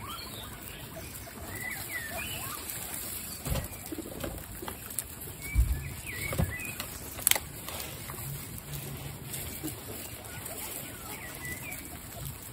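Guinea pigs munch and rustle through grass and straw.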